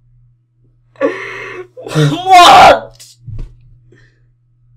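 A young man groans and cries out through a microphone.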